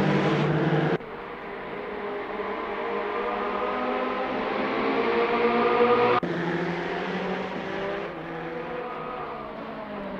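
Racing car engines drone in the distance, rising as they approach.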